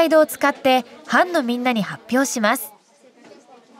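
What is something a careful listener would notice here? A young girl speaks clearly close by.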